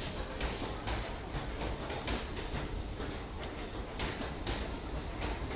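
A train stands idling with a low rumble.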